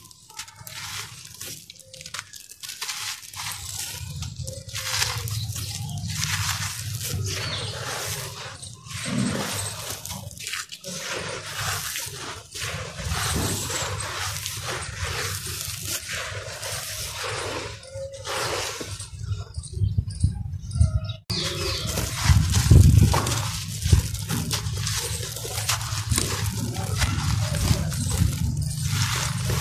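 Hands crumble dry dirt clumps, which rustle and crunch up close.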